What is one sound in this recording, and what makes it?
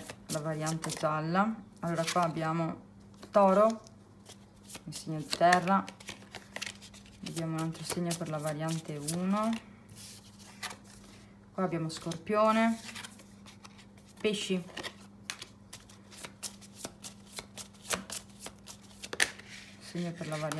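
Playing cards snap and slide as they are dealt onto a table.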